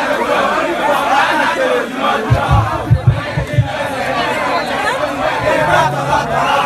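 A performer sings through loudspeakers.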